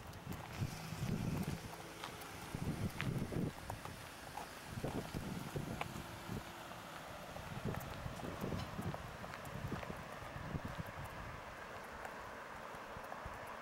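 An orange rolls and rattles along a concrete gutter.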